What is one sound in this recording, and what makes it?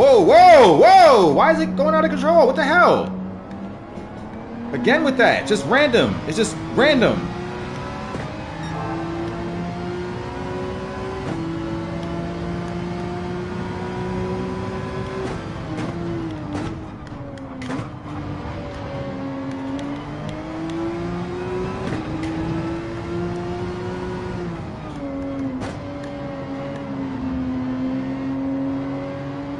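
A racing car engine drones and revs up and down as it shifts gears.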